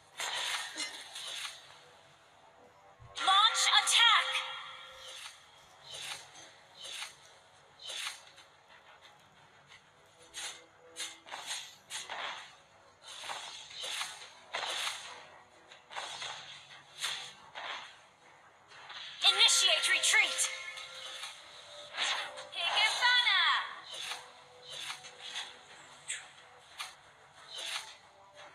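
Game sound effects of swords slashing and spells blasting ring out in quick bursts.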